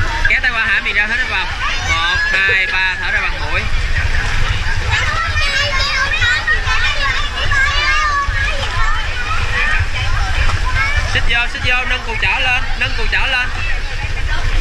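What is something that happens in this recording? Water splashes as children swim.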